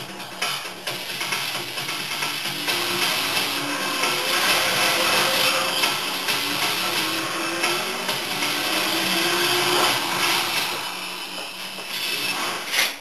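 Loud music plays from a television speaker.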